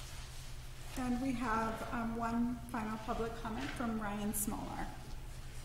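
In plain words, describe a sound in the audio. A woman speaks calmly over a microphone.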